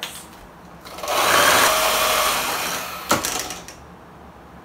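An electric hand mixer whirs in a bowl.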